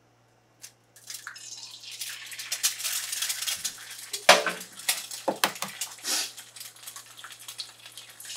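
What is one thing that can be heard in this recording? Oil sizzles and crackles in a hot pan.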